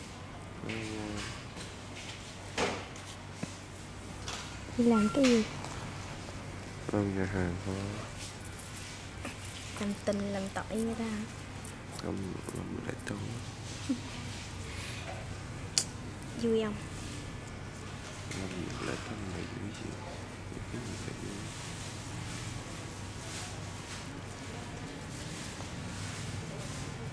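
A razor scrapes lightly over stubble.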